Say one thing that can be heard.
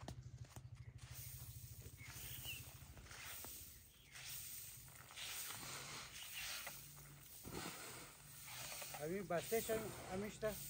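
Grain rustles and hisses as it is tossed and swept on a tarp.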